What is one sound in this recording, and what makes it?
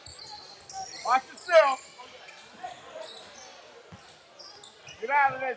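A crowd of spectators shouts and cheers in bursts.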